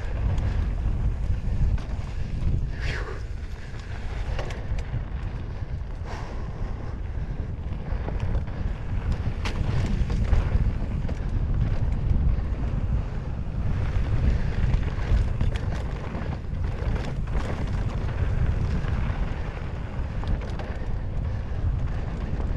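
Bicycle parts rattle and clatter over bumps.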